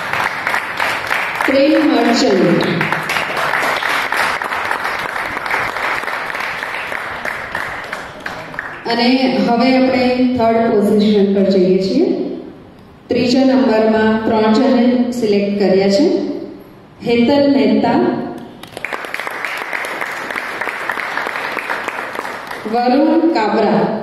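A crowd applauds in a large hall.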